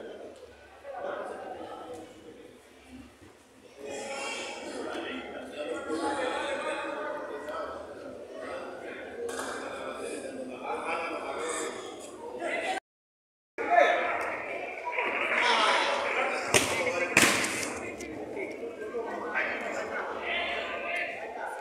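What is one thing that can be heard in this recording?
Young men shout and call out to each other in an echoing space.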